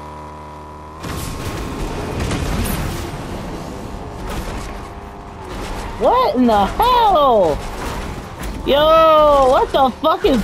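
A car engine roars with a boost of speed.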